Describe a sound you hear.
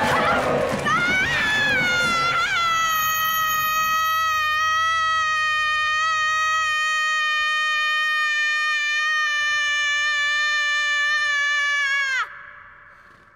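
A young girl screams in a long, high, steady shriek that cuts off suddenly.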